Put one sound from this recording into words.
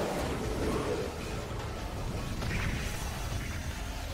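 An explosion roars and booms.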